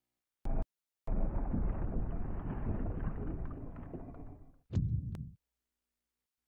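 A heavy door creaks open with a low rumble.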